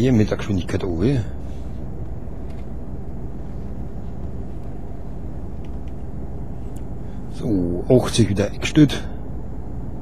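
A man talks calmly and closely into a microphone.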